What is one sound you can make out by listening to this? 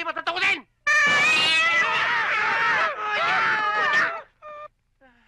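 A man cries out loudly in pain.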